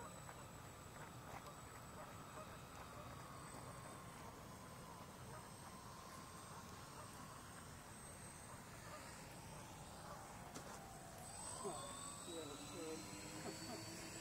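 A model plane's engines drone steadily, shifting in pitch as it passes.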